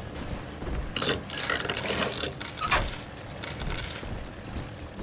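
A metal safe door clanks and rattles open.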